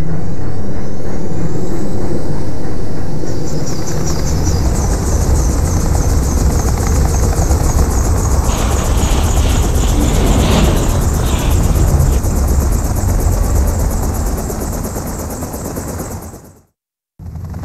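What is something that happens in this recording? A helicopter's rotors thump and roar loudly overhead.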